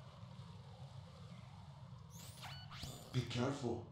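An electronic radio call chirps and beeps.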